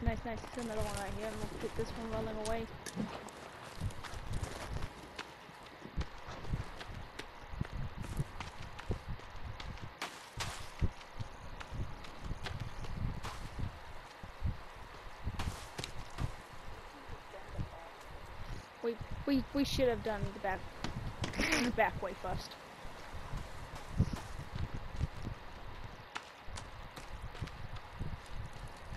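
Footsteps run steadily over grass and dirt.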